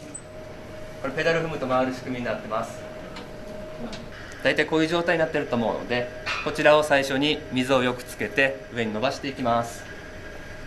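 A man speaks calmly to a small group nearby.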